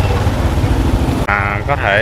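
A motor scooter engine hums as the scooter passes close by.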